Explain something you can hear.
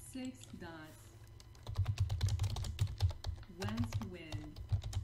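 A woman talks calmly close to a microphone.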